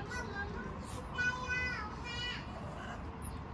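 A small dog whines in a high, wavering voice.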